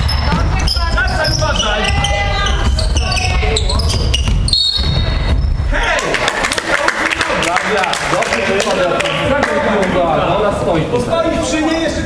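Sneakers squeak on a hard court floor.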